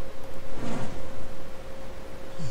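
Fiery magical explosions burst and crackle.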